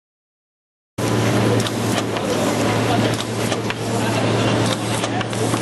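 A packaging machine hums and clatters rapidly.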